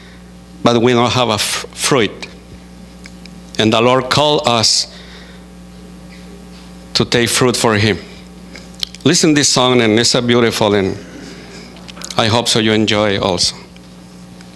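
A middle-aged man speaks slowly and deliberately into a microphone, in phrases with pauses, in a large reverberant hall.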